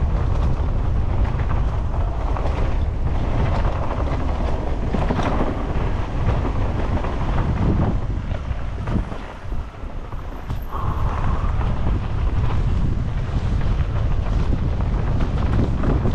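Tyres crunch over dry leaves and dirt.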